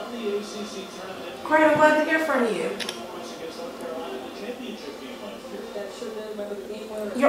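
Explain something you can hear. A young woman talks on a phone nearby.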